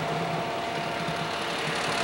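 A car drives along a nearby street.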